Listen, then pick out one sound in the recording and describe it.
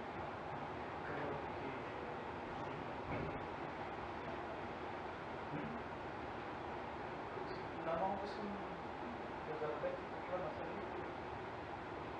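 A man speaks calmly at a distance in a room with a slight echo.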